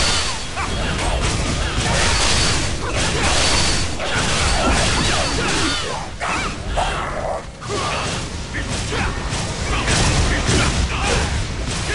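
Magic blasts and sword strikes crash and whoosh in a fast fight.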